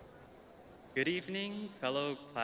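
A young man speaks into a microphone over a loudspeaker.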